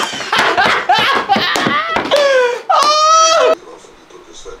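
Several young men laugh loudly and heartily.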